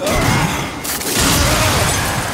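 Ice shatters and crashes.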